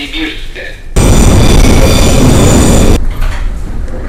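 A subway train roars loudly as it runs.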